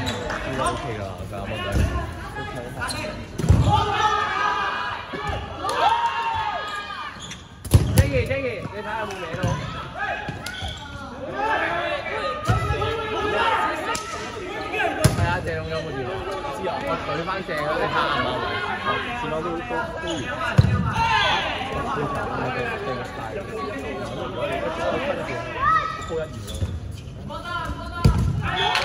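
Sneakers squeak on the court floor.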